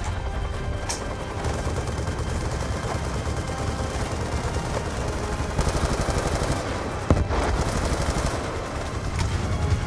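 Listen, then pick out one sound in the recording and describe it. A rifle magazine clicks as it is reloaded.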